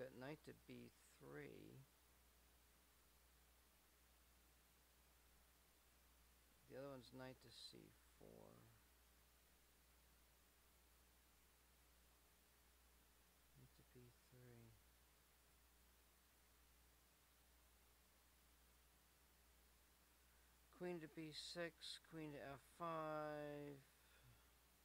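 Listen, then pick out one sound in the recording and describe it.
A man talks calmly and closely into a microphone, in short bursts with pauses.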